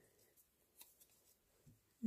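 Tape peels off a strip with a light crackle.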